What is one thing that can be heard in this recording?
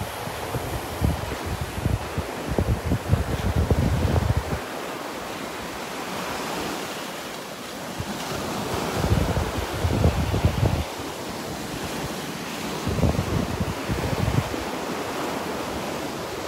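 Small waves wash gently onto a shore.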